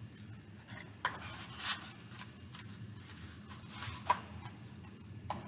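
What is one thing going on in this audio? A matchbox rattles and slides open.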